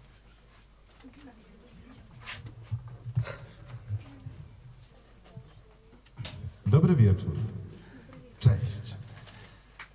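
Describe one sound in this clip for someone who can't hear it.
A man speaks softly into a microphone.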